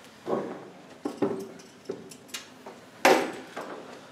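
Knocks and clatter sound from a metal pole being handled.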